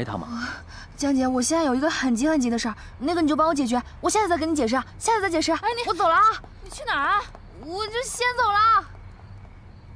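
A second young woman answers with animation, close by.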